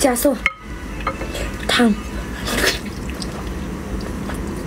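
A young woman bites and sucks at meat with wet smacking sounds.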